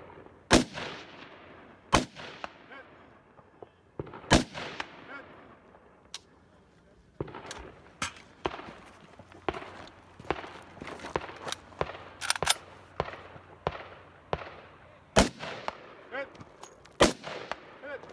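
Rifle shots crack loudly, one after another, and echo off the surrounding hills.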